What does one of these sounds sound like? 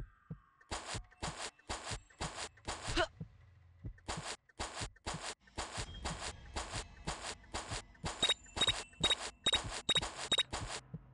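Footsteps thud in a steady walking rhythm.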